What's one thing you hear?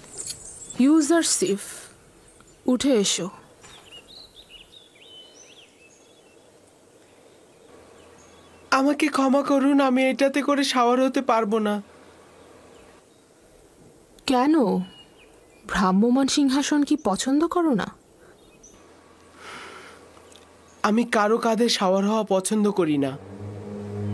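A boy speaks calmly, close by.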